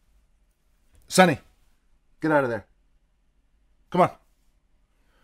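A man grunts and exclaims briefly into a microphone.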